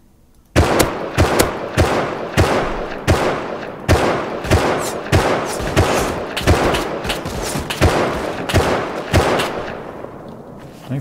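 A rifle fires rapid shots in quick bursts.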